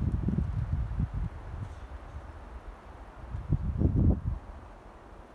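Low wind rumbles across the microphone outdoors.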